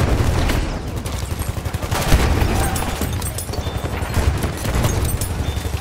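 Explosions rumble nearby.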